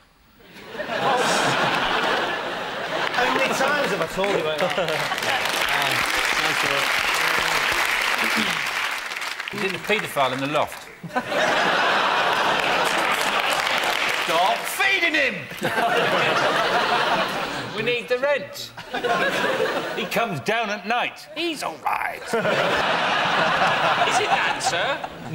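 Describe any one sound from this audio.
A large studio audience laughs and applauds loudly.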